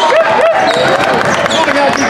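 A basketball bounces on the floor as a player dribbles.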